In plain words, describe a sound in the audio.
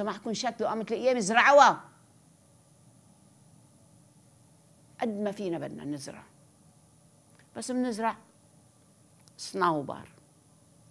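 An elderly woman speaks calmly into a close microphone, with pauses.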